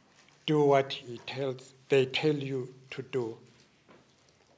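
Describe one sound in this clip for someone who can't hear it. An elderly man speaks slowly and solemnly into a microphone.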